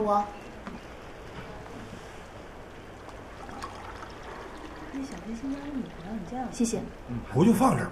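Water pours from a kettle into a cup.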